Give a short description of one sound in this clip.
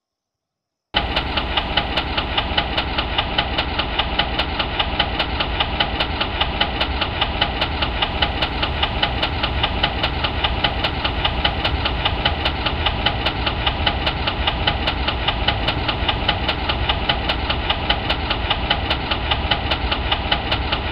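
Train wheels clack rhythmically over the rails.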